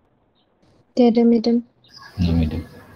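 A young woman speaks through an online call.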